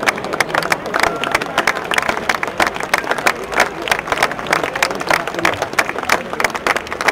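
A crowd claps and applauds close by.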